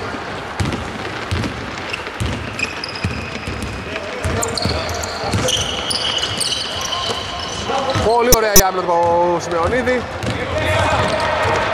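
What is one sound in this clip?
A basketball thuds as it bounces on the floor.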